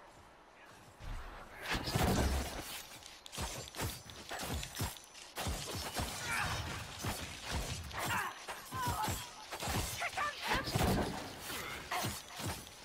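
Magic spells crackle and zap in rapid bursts.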